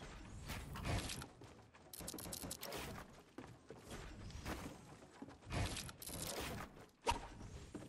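Wooden building pieces clatter and snap into place in quick bursts.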